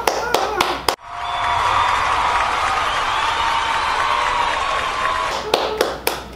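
A large audience applauds and cheers in a big hall.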